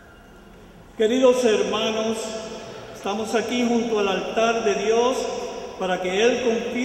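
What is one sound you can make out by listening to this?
A man speaks loudly and clearly through a microphone.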